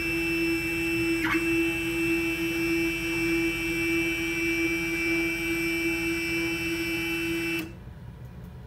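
A machine spindle whirs with a steady high whine, then stops abruptly.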